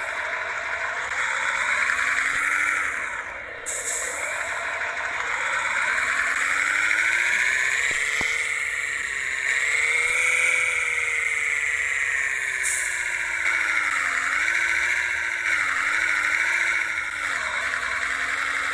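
A bus engine hums and rises and falls in pitch as the bus speeds up and slows down.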